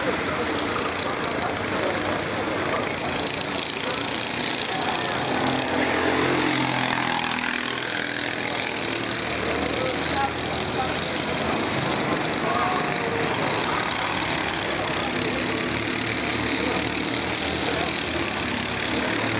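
A go-kart engine buzzes loudly as a kart speeds past.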